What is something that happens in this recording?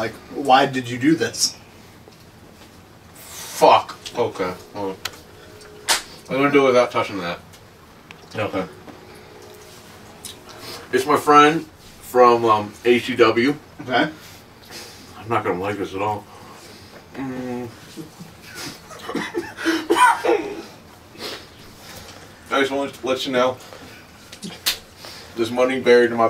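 A second man talks and laughs close by.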